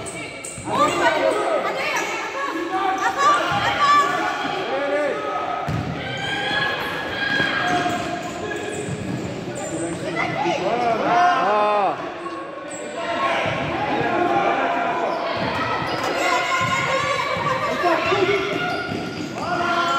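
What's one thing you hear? Children shout and cheer excitedly in a large echoing hall.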